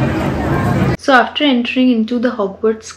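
A young woman talks animatedly close to a microphone.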